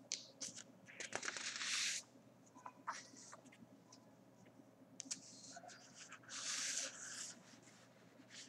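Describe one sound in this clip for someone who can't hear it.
Paper sheets rustle and slide as they are moved.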